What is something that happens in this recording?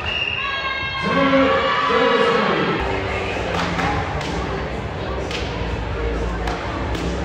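Young women on a team shout and cheer together.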